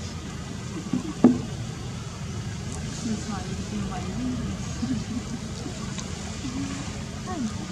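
A baby pigtail macaque cries with high, wavering squeals.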